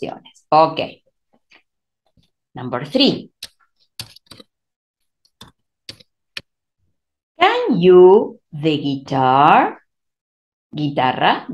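A woman speaks calmly and clearly into a microphone, in short phrases with pauses.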